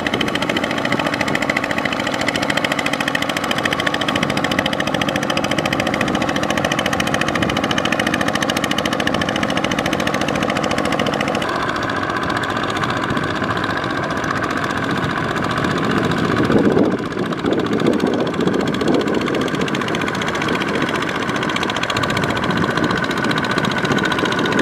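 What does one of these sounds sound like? A small tractor engine chugs steadily up close.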